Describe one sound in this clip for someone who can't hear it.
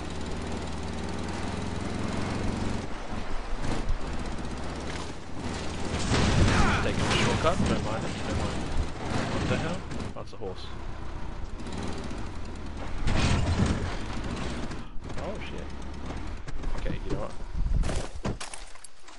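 A car engine hums and revs while driving.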